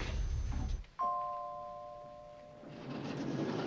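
An elevator bell dings once and rings out.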